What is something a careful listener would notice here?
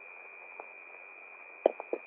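A man's footsteps run quickly over hard ground.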